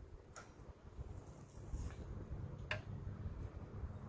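A wooden cabinet door swings open.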